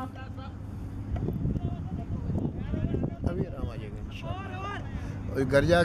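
Men call out and chatter outdoors at a distance.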